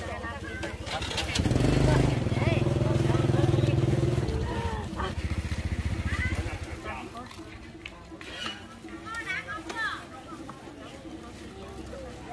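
Women talk and chatter nearby outdoors.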